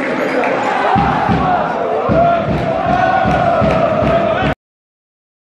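A crowd of fans claps in rhythm.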